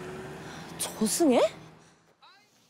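A young woman gasps in surprise, close by.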